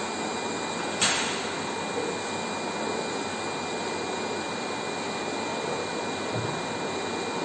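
Feet knock and thump on glass.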